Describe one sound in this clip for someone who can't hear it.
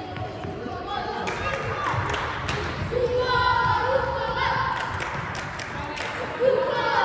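Young players shout to each other across an echoing hall.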